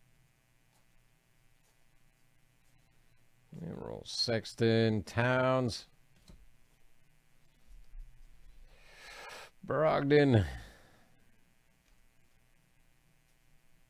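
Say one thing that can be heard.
Stiff cards slide and flick against each other as a stack is handled.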